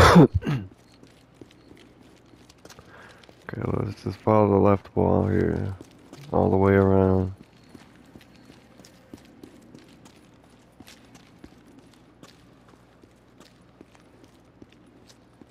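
Footsteps crunch softly on loose stones.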